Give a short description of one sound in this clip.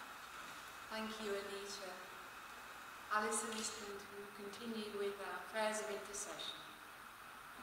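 A woman speaks calmly into a microphone in a large echoing hall.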